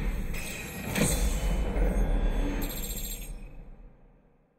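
A bright chime rings out.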